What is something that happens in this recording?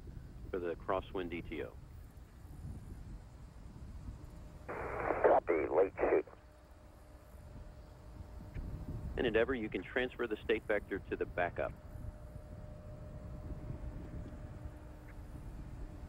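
A distant rocket engine rumbles low and steadily.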